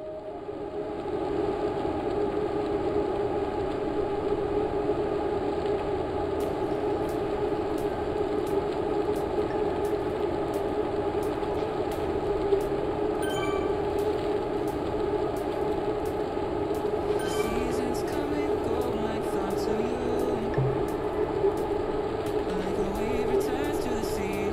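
A stationary bike trainer whirs steadily.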